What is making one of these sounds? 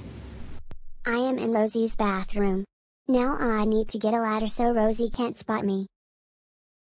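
A boy speaks in a flat computer voice, close by.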